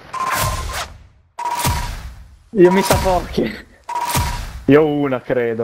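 A game's reward sound whooshes with a short chime each time points are tallied.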